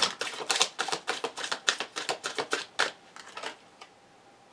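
Cards are shuffled with quick, dry rattling flicks.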